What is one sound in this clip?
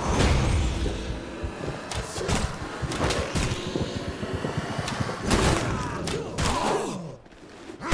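Blood sizzles and whooshes as it is drawn in.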